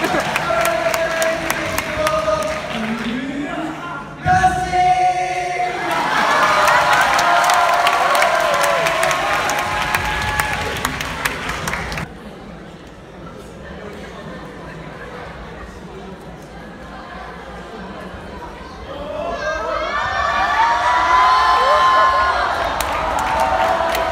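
Pop music plays loudly through loudspeakers in a large echoing hall.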